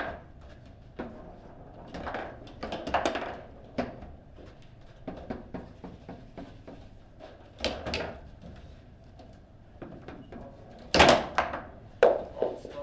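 A foosball ball clacks sharply against the plastic players and table walls.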